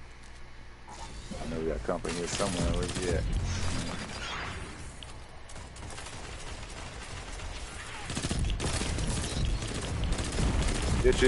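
A weapon fires crackling energy blasts.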